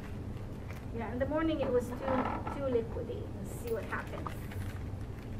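An elderly woman speaks calmly, slightly muffled, close by.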